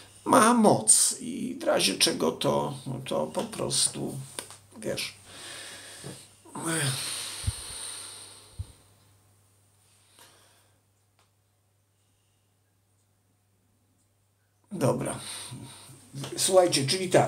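An older man speaks calmly and earnestly, close to a microphone.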